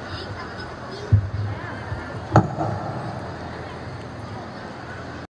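Children chatter and call out outdoors.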